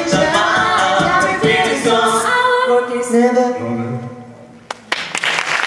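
A group of men and women sing together through microphones.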